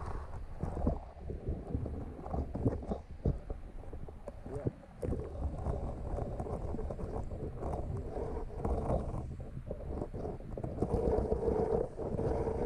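Water rumbles and churns in a muffled way, heard from underwater.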